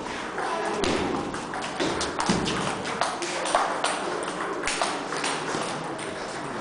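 A ping-pong ball clicks quickly back and forth off paddles and a table.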